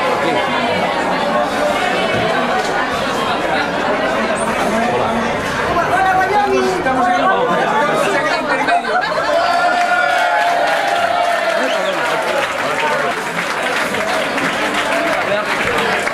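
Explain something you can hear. A crowd of people chatters loudly all around in a crowded room.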